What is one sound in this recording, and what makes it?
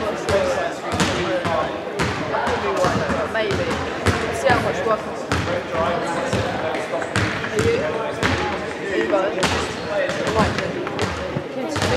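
Many young people chatter and call out across a large echoing hall.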